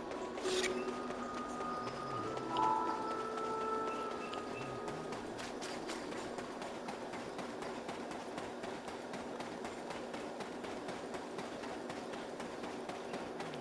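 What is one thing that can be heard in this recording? A horse gallops along a dirt path.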